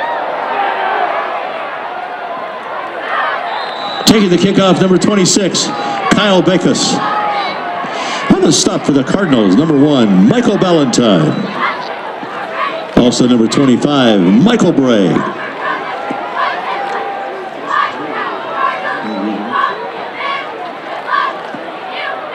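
A crowd cheers and shouts outdoors in a large stadium.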